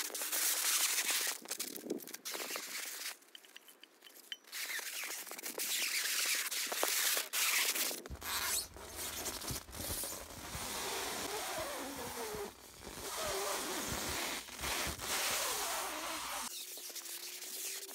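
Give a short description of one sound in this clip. Plastic wrap crinkles and squeaks as it is stretched off a roll.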